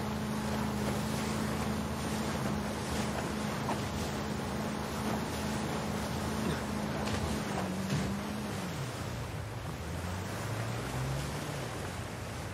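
A motorboat engine drones steadily, then slows down and drops in pitch.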